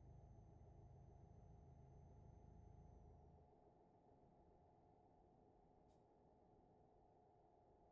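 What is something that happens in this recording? A truck engine rumbles low and steady, then quietens.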